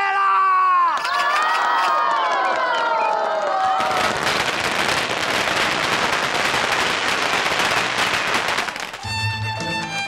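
A crowd cheers and shouts.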